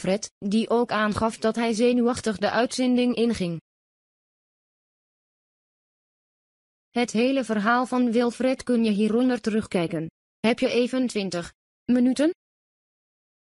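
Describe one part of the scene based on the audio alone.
A young woman reads out calmly and closely into a microphone.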